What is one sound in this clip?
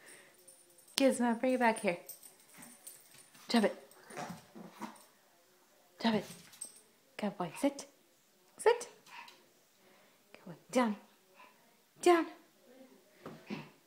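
A small dog gives short, high yips now and then.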